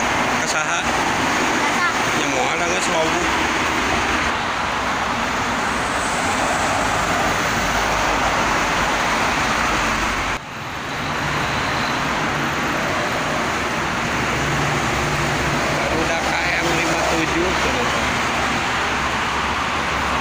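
Heavy trucks rumble by with deep engines.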